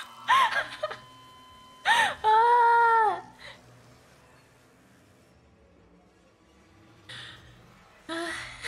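A young woman squeals and exclaims loudly into a microphone.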